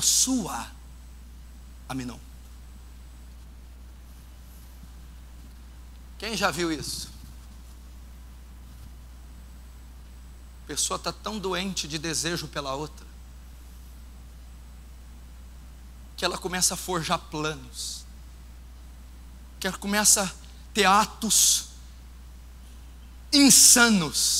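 A man speaks with animation through a microphone, in bursts with long pauses.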